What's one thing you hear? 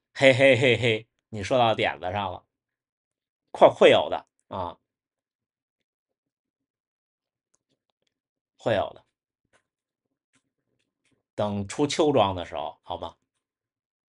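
A young man speaks calmly close by, with long pauses.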